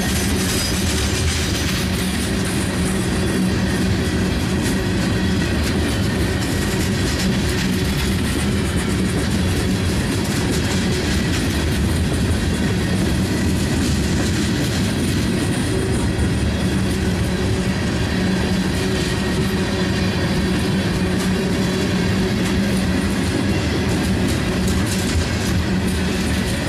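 Wheels clack and squeal on the rail joints.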